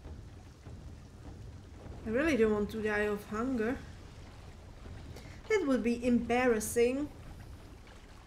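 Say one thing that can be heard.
Water splashes and sloshes as someone wades and swims.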